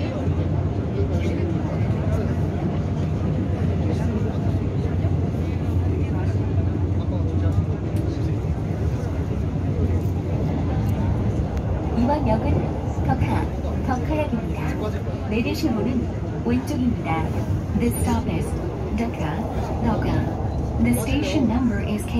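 A train rumbles steadily as it rides along.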